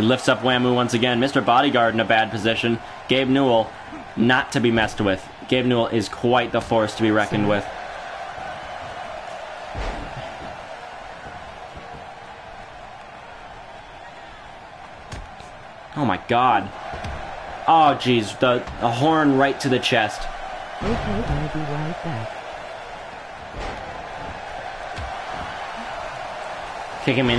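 A crowd murmurs and cheers steadily.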